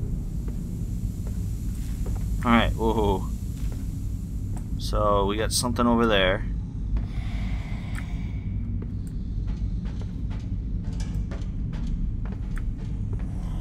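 Footsteps clank on a metal grate floor.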